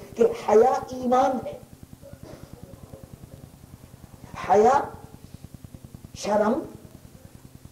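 An elderly man speaks into a microphone in short, slow, forceful phrases with pauses between them.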